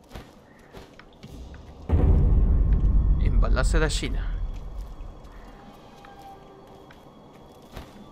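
Footsteps crunch quickly over snowy ground.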